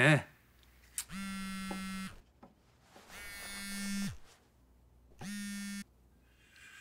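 A mobile phone rings with a repeating electronic tone.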